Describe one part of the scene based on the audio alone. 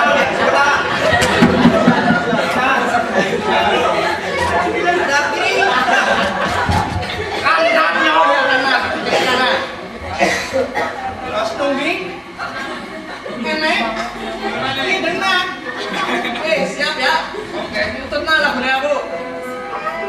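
Several men speak loudly and with animation in a hard, echoing room.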